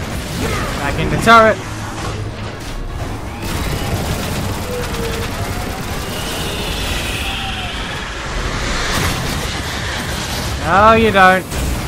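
A giant robot lets out a loud, metallic roar.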